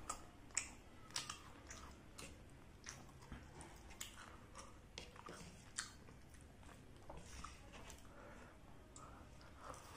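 A man chews food noisily and smacks his lips close by.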